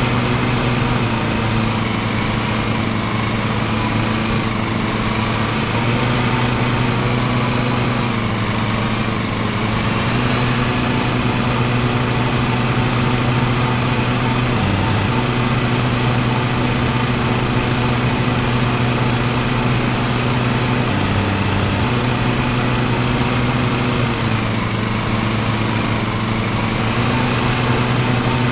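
A riding mower's engine hums steadily, its pitch dipping briefly now and then.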